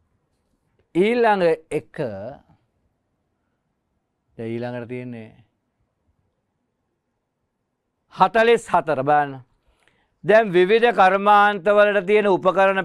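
A middle-aged man explains calmly, in pauses, through a microphone.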